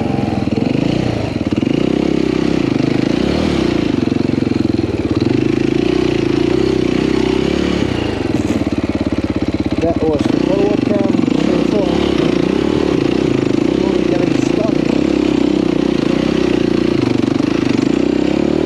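A dirt bike engine buzzes loudly up close, rising and falling as the throttle opens and closes.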